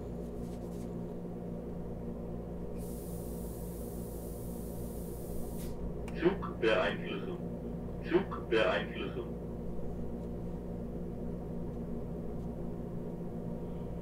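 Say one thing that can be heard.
An electric train hums steadily as it runs along the track.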